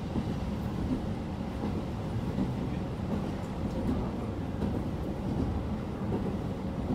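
A train rumbles steadily along the tracks, heard from inside.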